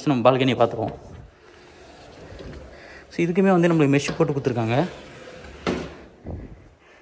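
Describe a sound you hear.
A sliding window rolls along its track and thuds shut.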